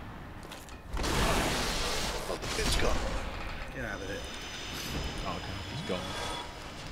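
A fiery blast bursts with a loud roar.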